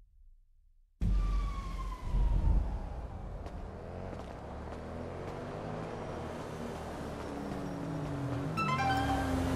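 City traffic hums steadily nearby.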